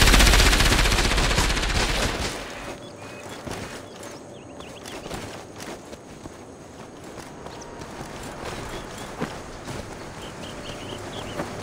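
Footsteps splash and rustle through wet grass.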